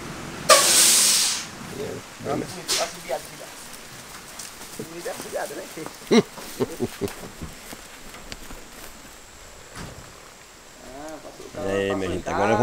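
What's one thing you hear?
A horse's hooves clop slowly on a dirt road.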